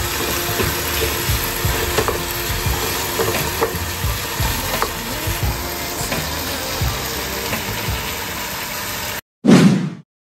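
A wooden spoon scrapes and taps against a pan.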